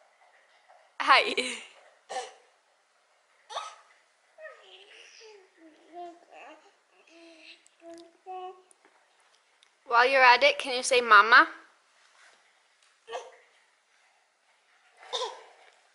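A baby squeals and babbles close by.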